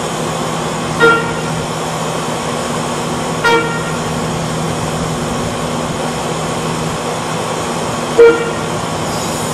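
A train horn blows three times as a train approaches.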